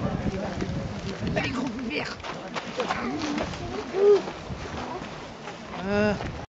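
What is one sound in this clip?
Many footsteps patter on a paved road.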